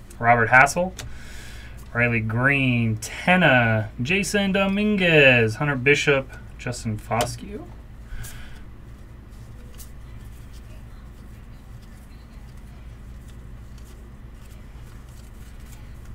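Trading cards rustle and slide against each other as they are flipped through by hand.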